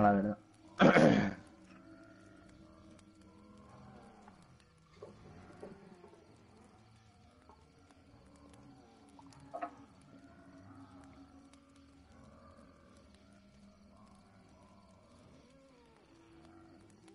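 A campfire crackles and pops softly.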